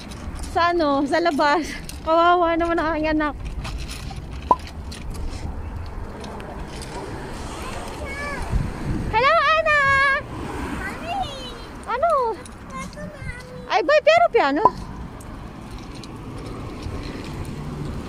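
Small plastic wheels roll and rattle on pavement.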